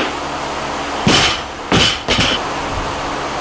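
A barbell with bumper plates is dropped onto the floor and bounces.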